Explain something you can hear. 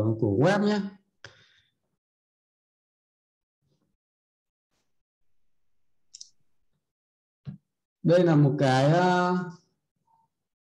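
A man speaks calmly and close to a microphone, in short phrases with long pauses.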